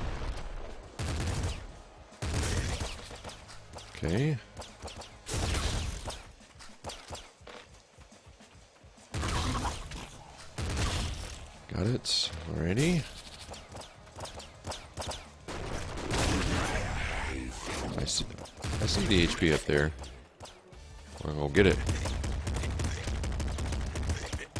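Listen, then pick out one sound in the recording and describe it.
Video game guns fire in rapid bursts.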